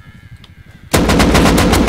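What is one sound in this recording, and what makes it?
A rifle fires a fast, loud burst.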